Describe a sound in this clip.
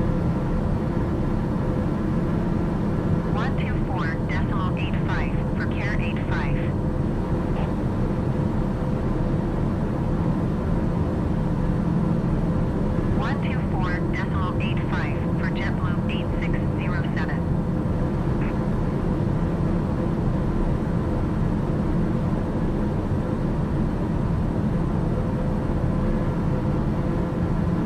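A light aircraft's engine drones in the cockpit.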